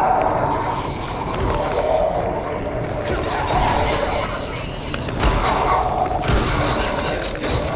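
A zombie snarls and growls close by.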